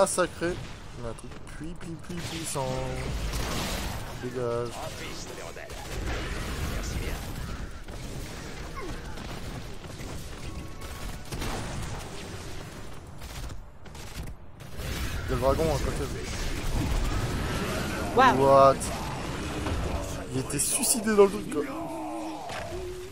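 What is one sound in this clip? Game battle effects crackle and blast in quick bursts.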